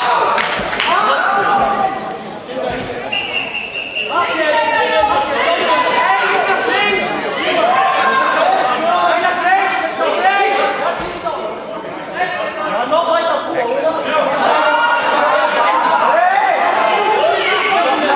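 A group of young men chant and cheer loudly together in an echoing hall.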